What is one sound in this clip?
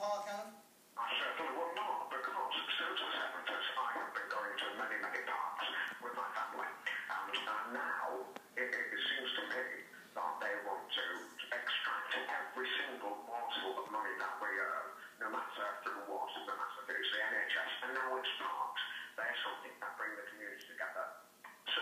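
A middle-aged man talks with animation through a television speaker.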